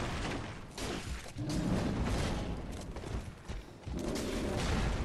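A man talks into a microphone with animation.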